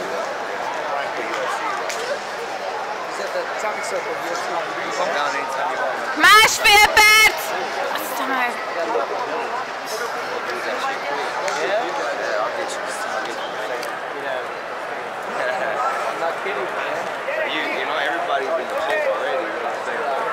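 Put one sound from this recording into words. A crowd murmurs and chatters throughout a large echoing hall.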